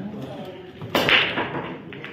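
A cue strikes a ball and the racked balls scatter with a loud crack.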